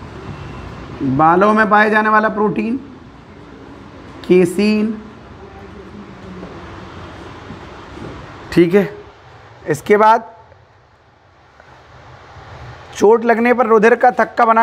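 A man speaks calmly, close to the microphone, in short phrases with pauses.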